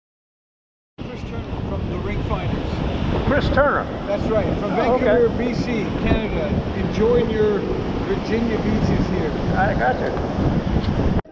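A middle-aged man talks calmly outdoors.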